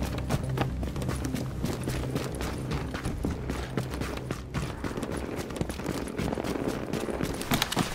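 Gunshots crack repeatedly in quick bursts.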